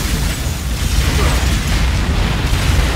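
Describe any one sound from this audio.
An explosion bursts.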